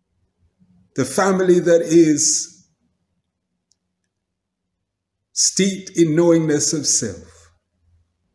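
A man speaks calmly and close to the microphone, with a pause between two phrases.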